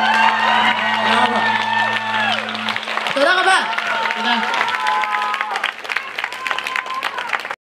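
A live rock band plays loudly in a large hall.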